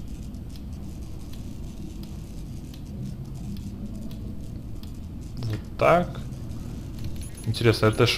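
Soft clicks tick now and then.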